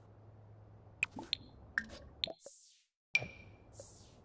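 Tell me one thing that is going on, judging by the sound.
Soft menu clicks chime.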